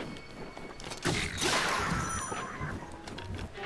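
A weapon shatters with a bright, crackling burst.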